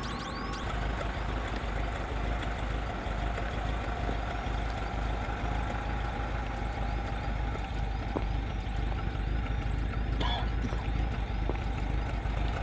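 A van engine idles nearby.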